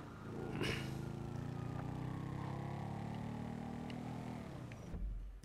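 A motorbike engine hums steadily as it rides along.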